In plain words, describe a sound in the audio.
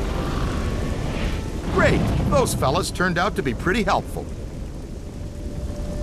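Heavy doors creak slowly open.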